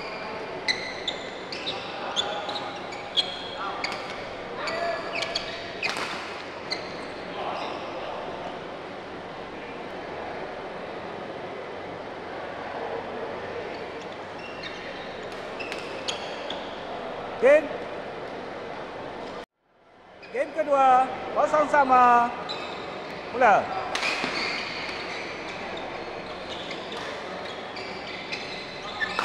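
Shuttlecocks are struck sharply by rackets in a large echoing hall.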